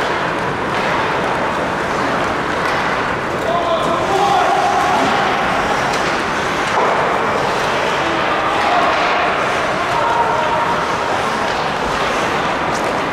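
Skates scrape and glide across the ice.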